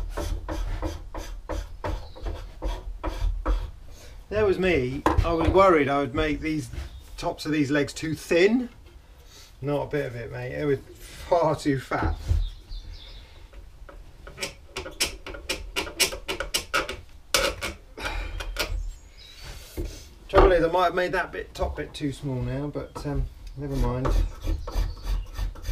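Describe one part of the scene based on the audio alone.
A hand tool scrapes and shaves wood in quick strokes.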